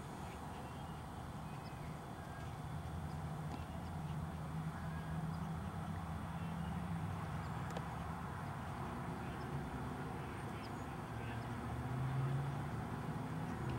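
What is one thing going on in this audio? A ball rolls and bumps across grass as a small dog pushes it.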